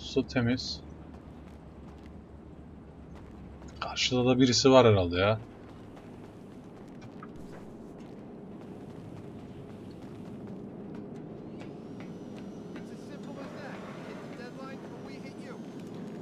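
Footsteps patter on a hard rooftop.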